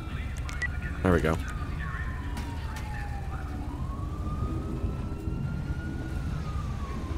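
A police siren wails slowly up and down nearby.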